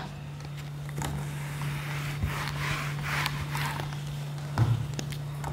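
A sponge wipes a whiteboard.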